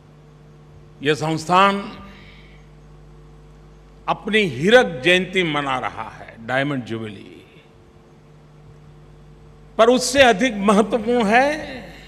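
An elderly man speaks slowly and deliberately into a microphone, heard through loudspeakers in a large hall.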